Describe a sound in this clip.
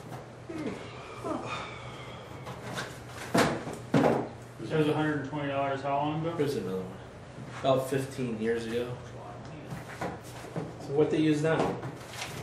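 Papers and objects rustle and knock in a cardboard box.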